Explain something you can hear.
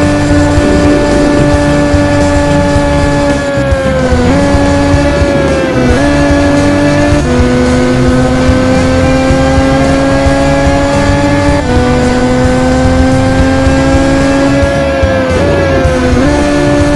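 A racing car engine whines loudly, its pitch dropping and jumping as the gears shift.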